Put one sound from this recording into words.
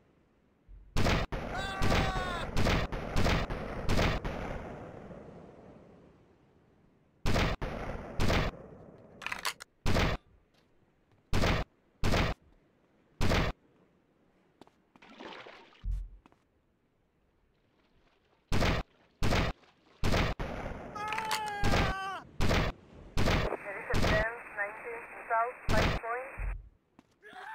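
Sniper rifle shots ring out one after another.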